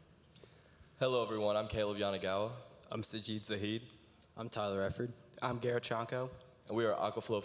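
A young man speaks clearly through a microphone and loudspeakers in a large echoing hall.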